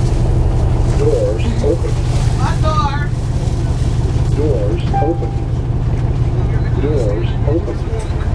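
A woman talks calmly nearby into a headset.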